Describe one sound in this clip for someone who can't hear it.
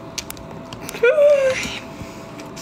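A young woman lets out a short squeal of laughter close by.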